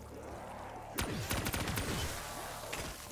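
A gun fires in a quick burst.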